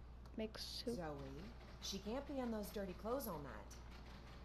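An elderly woman speaks in a strained, wavering voice.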